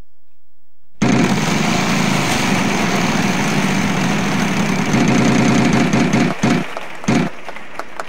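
A prize wheel spins with rapid ticking.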